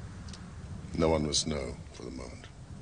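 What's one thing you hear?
A man speaks quietly and gravely, close by.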